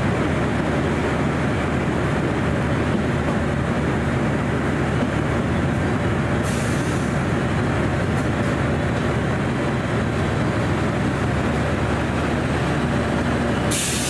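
An electric train approaches and rolls past close by, its wheels rumbling on the rails.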